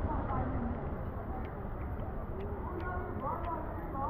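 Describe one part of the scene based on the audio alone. A cart's wheels roll over wet ground.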